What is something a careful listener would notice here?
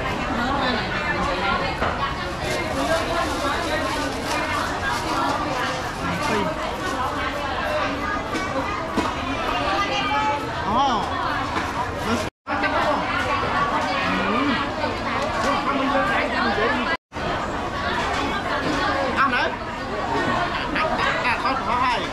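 A busy crowd chatters all around.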